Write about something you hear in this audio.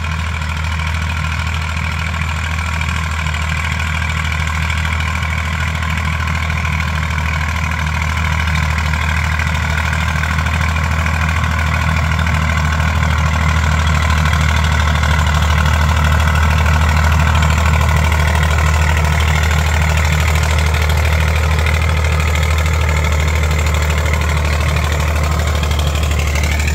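A tractor engine drones steadily and grows louder as it comes closer.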